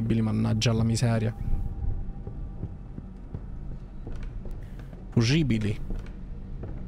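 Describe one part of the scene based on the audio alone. A young man speaks close to a microphone in short bursts.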